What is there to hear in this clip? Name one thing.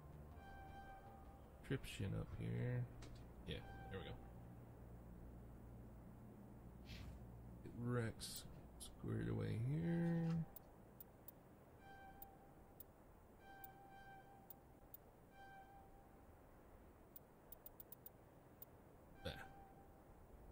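Short electronic menu beeps chime again and again.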